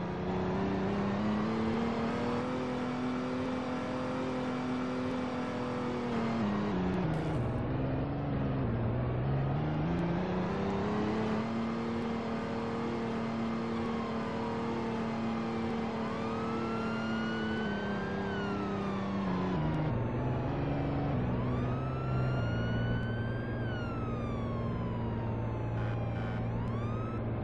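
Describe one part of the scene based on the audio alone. A car engine hums and its pitch rises and falls as the car speeds up and slows down.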